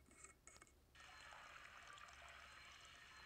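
A blender whirs steadily.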